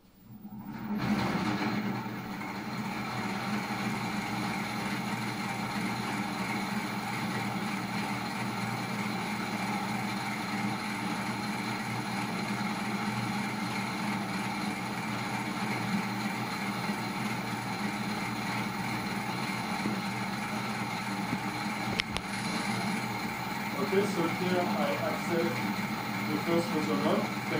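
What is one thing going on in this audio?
A machine hums steadily with a whirring drone.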